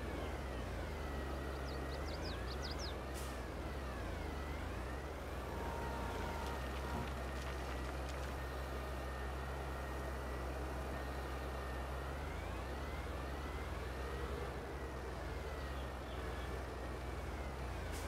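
A hydraulic loader arm whines as it lifts and tips.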